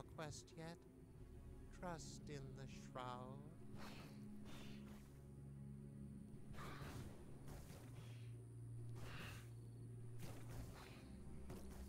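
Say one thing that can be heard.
A magical portal hums steadily with a low drone.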